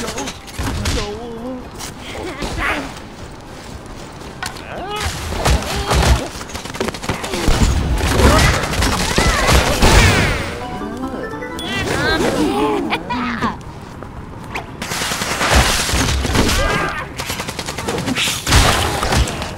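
Weapons clash and strike in quick, sharp bursts during a fight.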